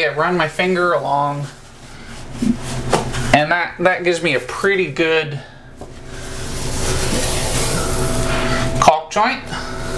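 A cloth rubs against a wall.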